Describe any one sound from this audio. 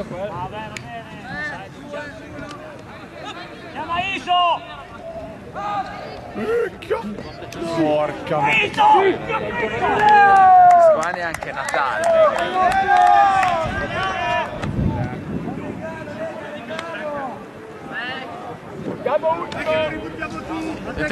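Young men shout and call to each other outdoors.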